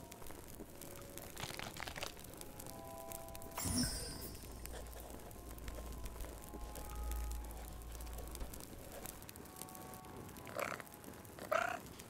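A fire crackles and pops in a fireplace.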